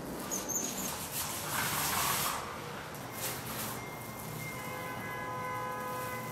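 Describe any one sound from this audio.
A paint roller rolls wetly across a wall.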